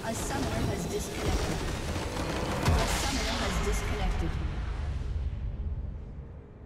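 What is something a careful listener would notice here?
A game base structure shatters with a loud crashing explosion.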